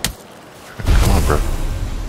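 A magic burst crackles and fizzes.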